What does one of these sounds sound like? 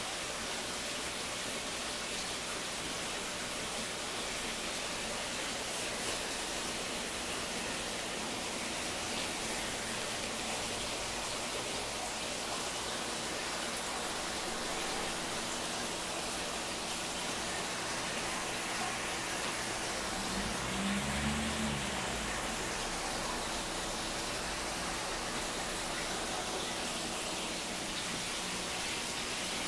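Air bubbles fizz and gurgle steadily in water.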